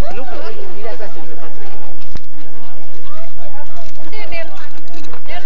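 A crowd of adults talks and calls out close by, several voices at once.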